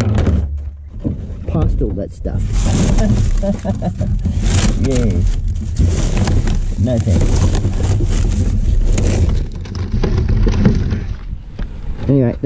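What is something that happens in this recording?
Plastic bags and wrappers rustle and crinkle up close.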